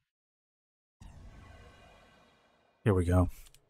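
A game alert chime sounds when a match is ready.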